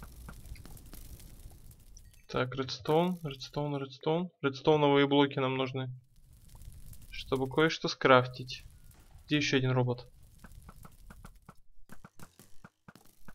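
Fire crackles and burns.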